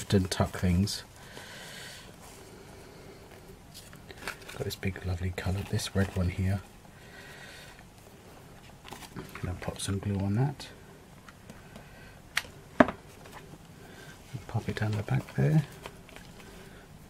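Dry leaves and twigs rustle and crinkle under handling.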